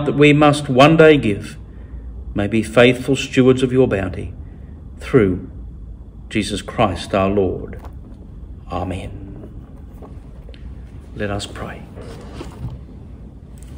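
A middle-aged man speaks calmly and slowly into a nearby microphone, in a reverberant hall.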